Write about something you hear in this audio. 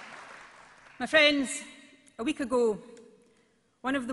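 A woman speaks calmly into a microphone over loudspeakers in a large hall.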